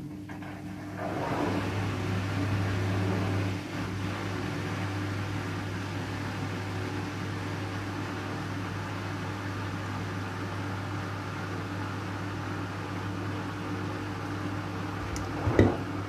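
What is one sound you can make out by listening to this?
Water sloshes and swishes inside a washing machine.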